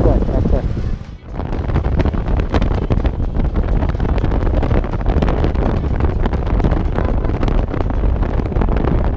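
Wind buffets loudly and gustily against the microphone as the motorcycle moves.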